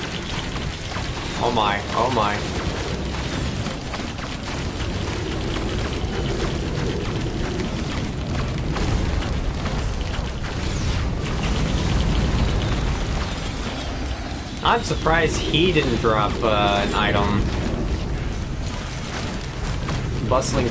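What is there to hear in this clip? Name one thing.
Loud blasts and explosions rumble from a video game.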